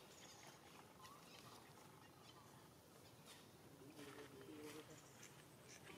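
A small monkey splashes its hand lightly in shallow water.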